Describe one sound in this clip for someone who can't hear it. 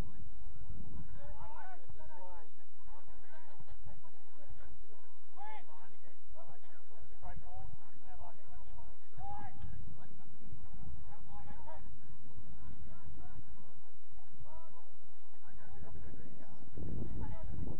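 Young players shout to each other across an open field, heard from a distance.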